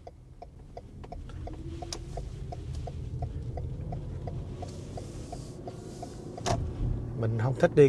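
A car engine hums as the car pulls away.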